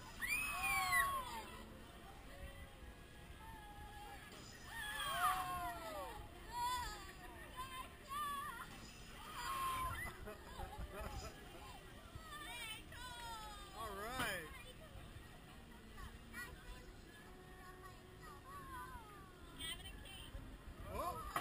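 Young riders scream and shriek with excitement nearby.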